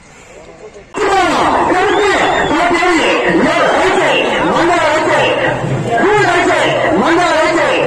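A large outdoor crowd shouts and cheers loudly.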